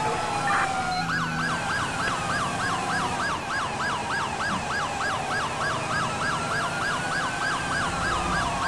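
A police siren switches to a fast yelping warble.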